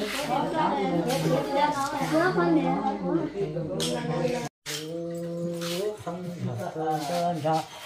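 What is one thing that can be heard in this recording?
A woman sings a slow melody close by.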